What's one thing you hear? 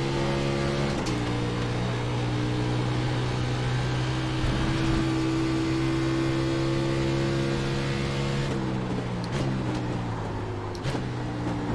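A race car engine drops in pitch as gears shift down.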